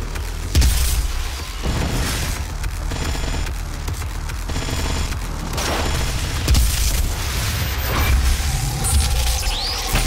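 A heavy gun fires with loud booms.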